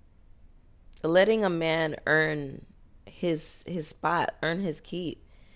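A young woman speaks expressively, close to a microphone.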